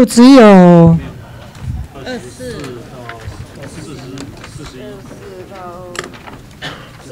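Several people talk quietly in the background.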